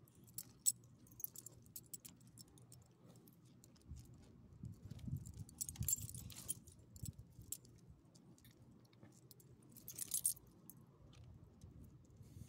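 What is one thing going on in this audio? A small dog sniffs and snuffles close by.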